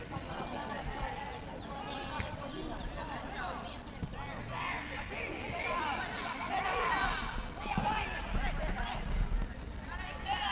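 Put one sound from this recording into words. Players shout to each other across an outdoor football pitch.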